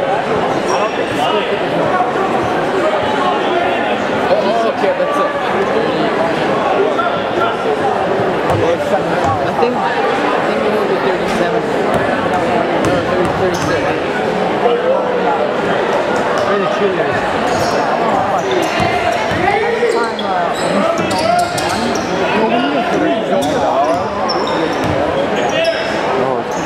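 A crowd of spectators chatters and calls out throughout in a large echoing gym.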